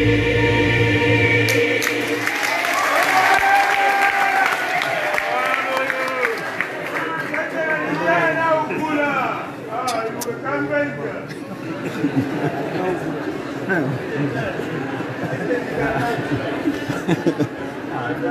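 A keyboard plays chords along with the singing.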